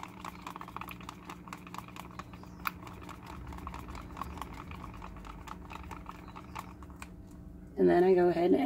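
A stick scrapes and taps inside a plastic cup.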